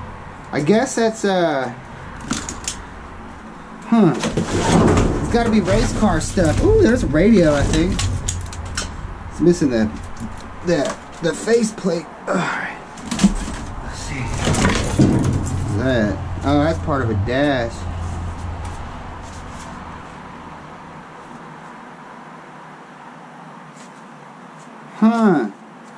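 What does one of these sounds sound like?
Plastic junk rattles and clatters as hands rummage through it.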